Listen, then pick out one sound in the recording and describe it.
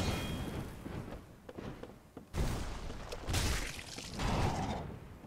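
A huge creature's wings beat with deep whooshes.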